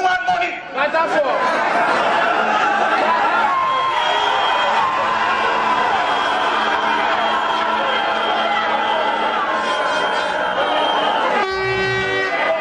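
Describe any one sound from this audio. A crowd cheers loudly in a large room.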